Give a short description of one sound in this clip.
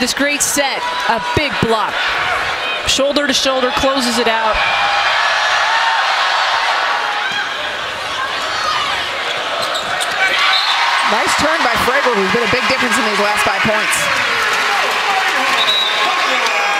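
A large crowd cheers and chatters in an echoing arena.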